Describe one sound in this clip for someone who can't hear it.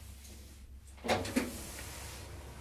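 Sliding elevator doors close with a thud.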